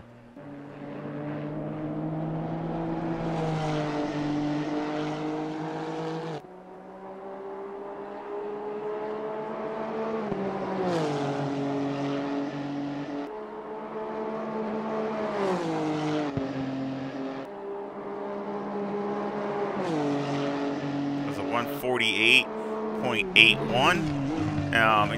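A racing car engine roars at high revs, climbing in pitch and dropping sharply with each gear change.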